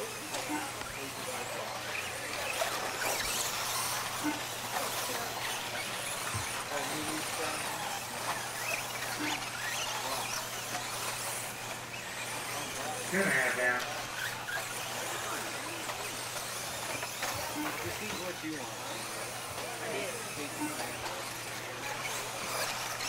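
Tyres of a small car crunch over loose dirt.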